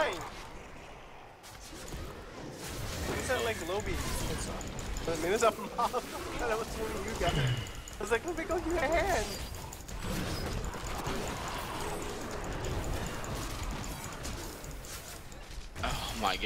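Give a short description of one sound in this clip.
Spells and blows crash and hiss in a fast game battle.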